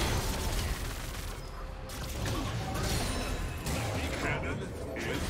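Game spells crackle and whoosh.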